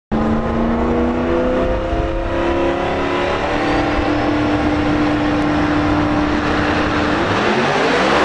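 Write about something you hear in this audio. Race car engines idle loudly with a rough, throbbing rumble.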